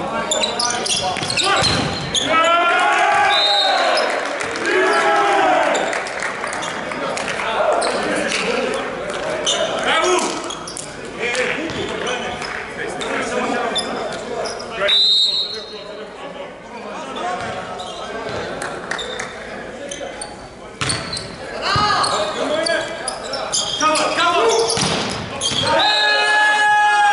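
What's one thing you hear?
Men shout and call out loudly in a large echoing hall.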